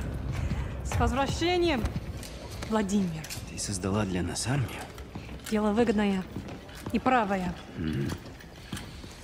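A young woman speaks calmly.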